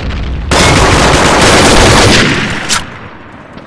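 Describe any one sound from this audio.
A rifle fires a loud, roaring burst.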